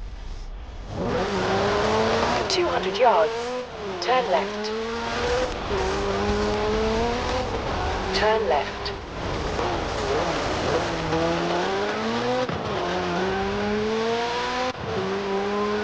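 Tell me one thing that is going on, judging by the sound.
A car engine roars and revs up and down as it drives.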